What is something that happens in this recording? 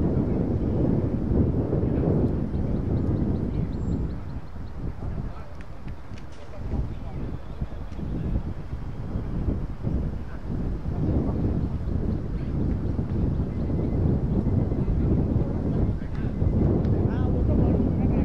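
Wind gusts roughly outdoors, rising and falling.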